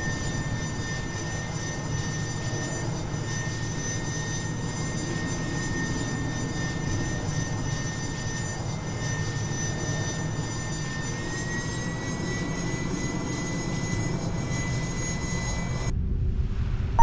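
Spacecraft engines roar steadily.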